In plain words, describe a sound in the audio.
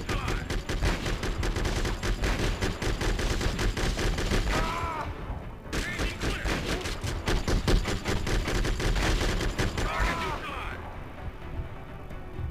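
A rifle fires single shots, one after another.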